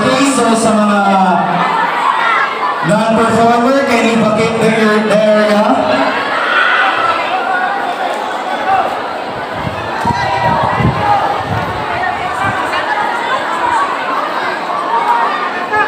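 A crowd of children and adults chatters and cheers close by.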